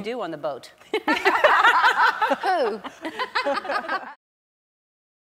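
Several women laugh loudly together.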